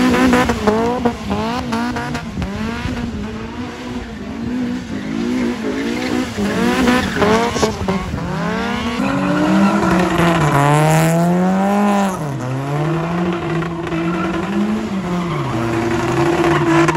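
A car engine revs hard and repeatedly, rising and falling in pitch.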